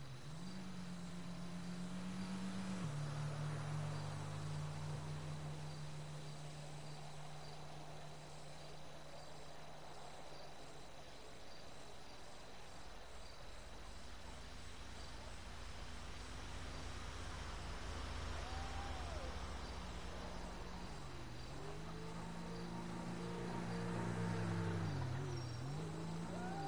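A car engine hums steadily, then revs up and down as the car drives along a road.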